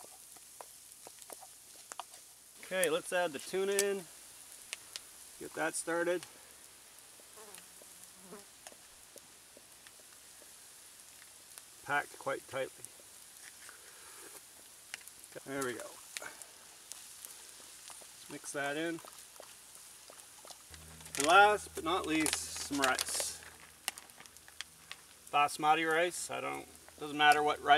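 Embers crackle and pop now and then.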